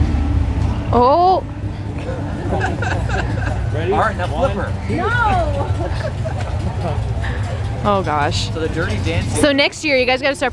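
A young woman laughs nearby.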